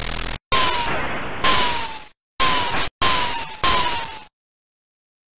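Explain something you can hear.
Video game laser shots blast in rapid noisy bursts, each with a falling tone.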